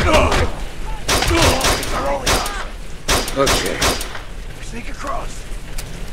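A pistol fires several shots.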